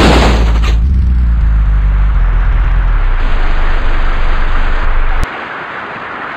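A van engine rumbles as it drives.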